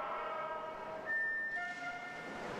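An electronic start signal beeps once.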